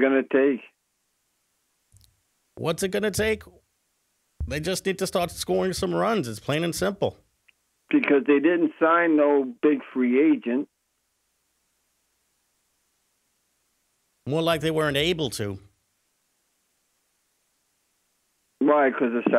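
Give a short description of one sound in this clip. A man talks over a phone line.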